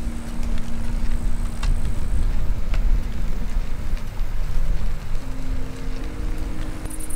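Tyres roll smoothly along a paved path.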